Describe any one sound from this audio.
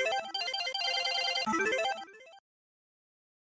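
A short electronic victory jingle plays.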